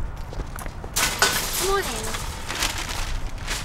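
Metal shopping carts rattle and clank as they are pushed together.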